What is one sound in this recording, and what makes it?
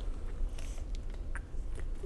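A man sips a drink from a can close by.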